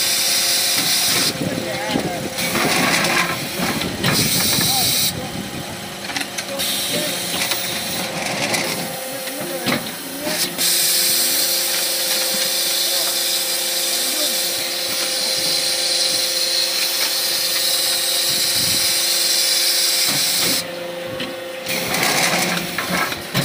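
A brick-making machine hums and rattles steadily.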